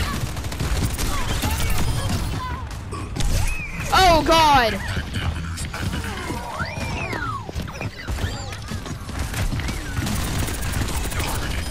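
Twin pistols fire rapid bursts of gunshots.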